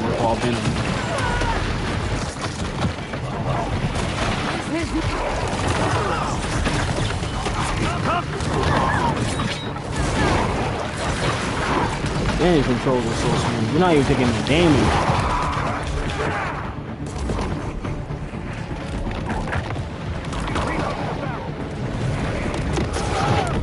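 Gunfire and explosions boom from a video game.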